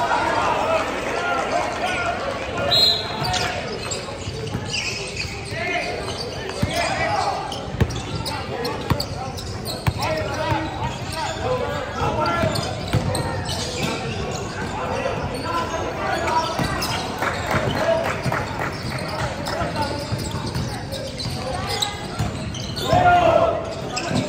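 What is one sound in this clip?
Young men shout and call out across the echoing hall.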